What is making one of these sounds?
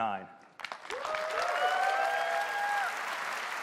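An audience cheers and whoops in a large hall.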